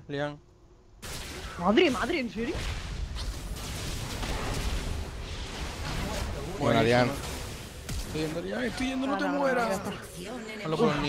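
Game spells and weapons clash in a fast battle.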